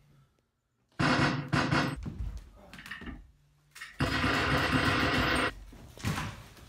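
An airsoft rifle fires in rapid bursts.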